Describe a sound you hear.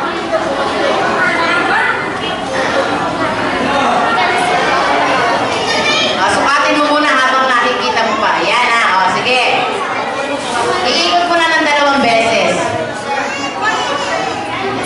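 A crowd of children and adults chatter and call out in a large echoing hall.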